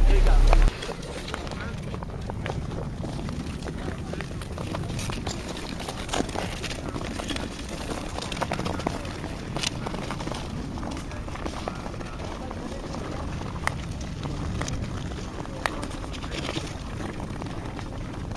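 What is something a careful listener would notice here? Ice skates scrape and click on ice.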